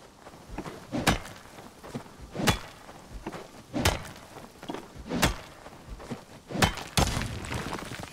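A pickaxe strikes rock in sharp, repeated blows.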